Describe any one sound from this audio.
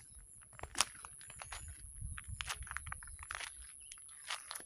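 Wind rustles the leaves of the trees outdoors.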